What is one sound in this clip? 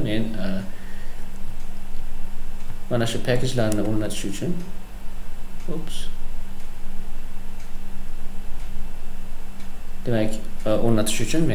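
A young man talks calmly and close to a microphone, in short bursts.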